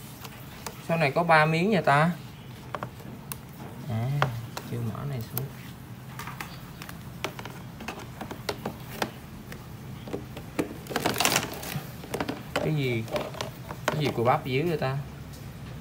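Hands knock and rattle against a plastic tray.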